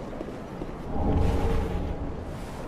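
A bright chime rings out with a low rumble.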